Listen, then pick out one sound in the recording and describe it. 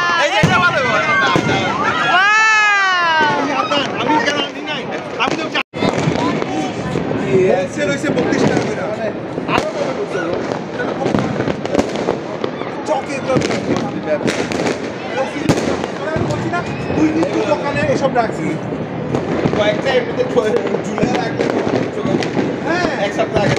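Fireworks pop and crackle in the distance outdoors.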